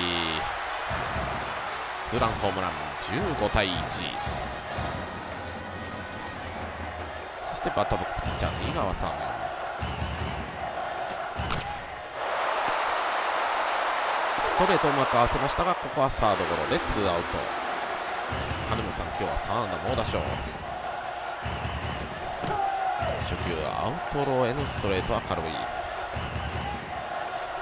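A large crowd cheers and chants steadily in a stadium.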